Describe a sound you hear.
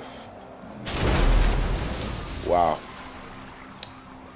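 Water splashes heavily as a car crashes into the sea.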